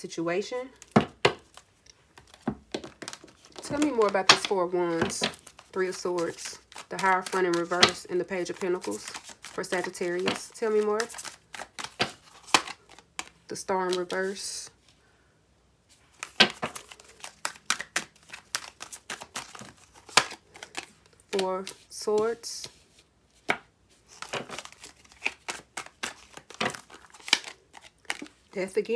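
Playing cards riffle and shuffle in quick, dry flicks.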